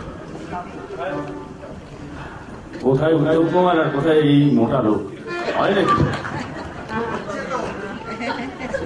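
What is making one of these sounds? A man sings through a microphone over loudspeakers.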